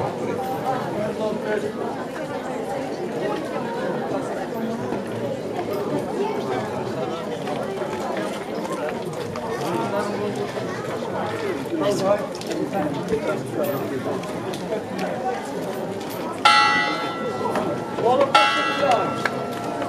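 A large crowd of men and women chatters and murmurs outdoors.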